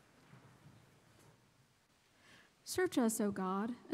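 A woman speaks into a microphone in a large echoing room.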